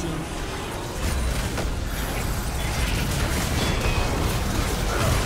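Magic blasts boom with deep rumbles.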